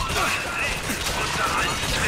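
A gun fires a loud blast.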